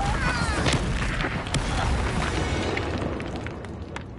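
A spell crackles and bursts loudly.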